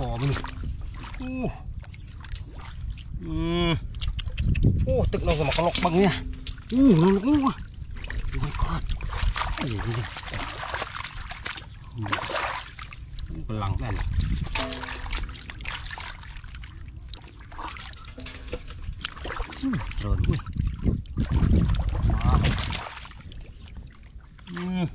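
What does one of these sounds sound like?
Hands splash and slosh in shallow muddy water.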